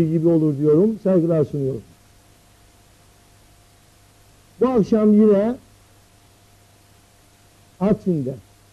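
A middle-aged man speaks with animation into a microphone, in short bursts with pauses.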